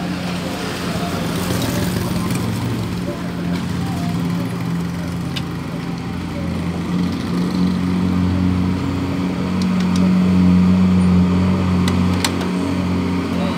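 Metal tools clink against a motorcycle.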